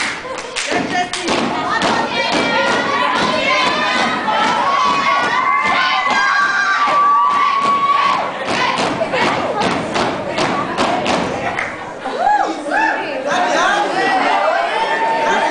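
A step team stomps in unison on a stage floor.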